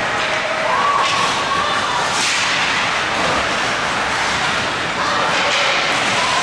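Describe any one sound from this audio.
Hockey sticks clack against the ice and a puck.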